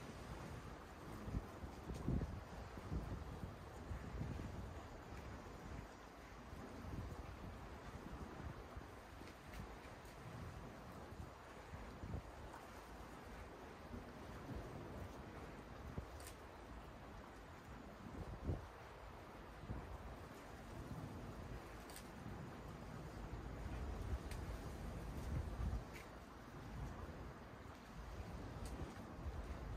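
Leaves rustle in the wind.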